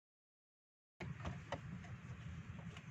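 A car stereo unit clicks and knocks as it is pulled from the dashboard.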